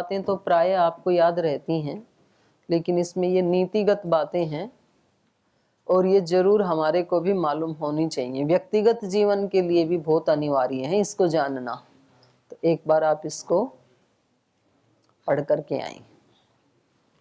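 A middle-aged woman speaks calmly and close by, in short phrases with pauses.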